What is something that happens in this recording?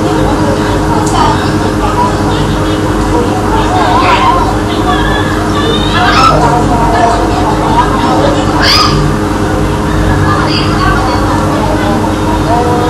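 A crowd of children chatters and calls out nearby.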